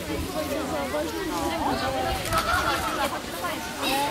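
A young woman speaks to a group.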